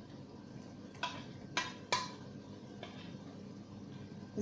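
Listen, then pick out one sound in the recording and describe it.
A spoon knocks against a plastic bowl.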